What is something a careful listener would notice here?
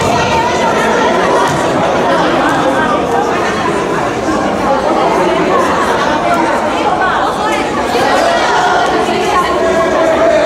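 A crowd of children chatters and shouts in a large echoing hall.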